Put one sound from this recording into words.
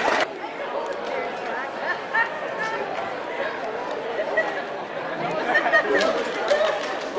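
Two young women sing together in a large echoing hall.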